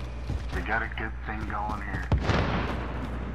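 A rifle clicks and clatters as it is swapped and raised.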